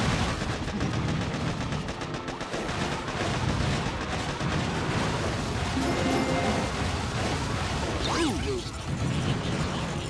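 Tanks fire and explosions boom.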